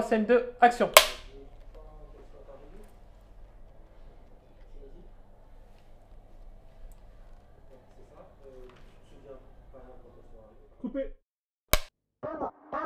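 A clapperboard snaps shut with a sharp clack.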